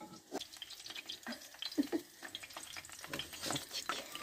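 A spatula scrapes against a frying pan.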